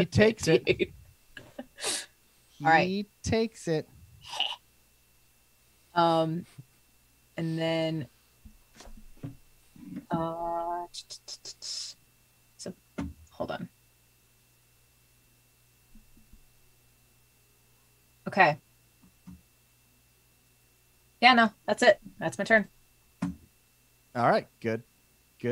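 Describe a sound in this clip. A young woman laughs and talks through an online call.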